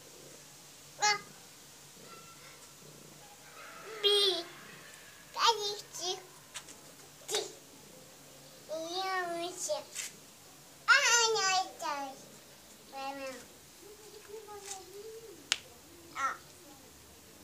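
A small kitten mews repeatedly in high, thin cries close by.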